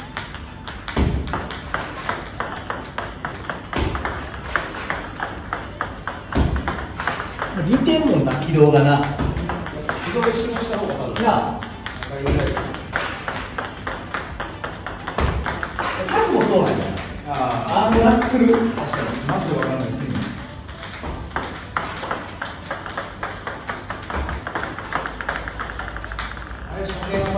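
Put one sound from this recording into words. A paddle strikes a ping-pong ball with a sharp tap.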